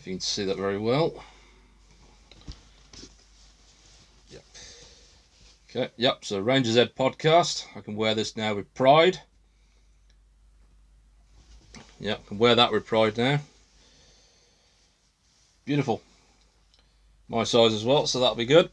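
Fabric rustles as a shirt is handled.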